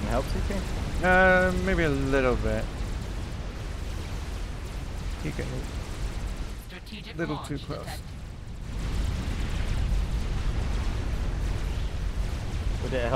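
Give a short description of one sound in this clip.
Explosions boom and rumble in a battle.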